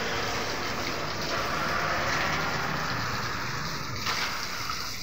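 Water sprays hard, splashing onto a wire cage.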